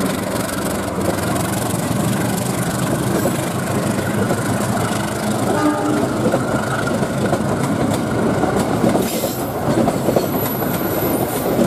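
A diesel locomotive rumbles steadily as a train rolls slowly past close by.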